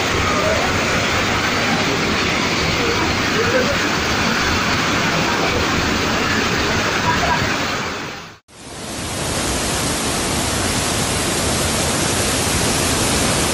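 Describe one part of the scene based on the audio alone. Muddy floodwater rushes and roars loudly nearby.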